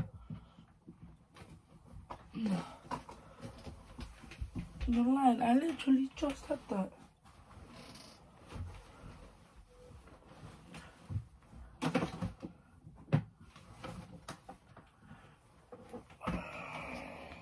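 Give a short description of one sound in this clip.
Fabric rustles as clothes are handled and moved.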